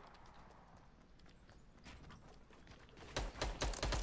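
Wooden walls are built with quick knocks.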